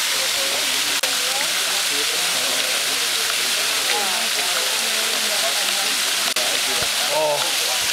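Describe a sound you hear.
Water trickles and splashes down a stone wall.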